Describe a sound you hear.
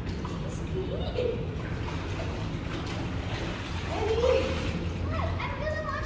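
Water splashes and laps in a pool.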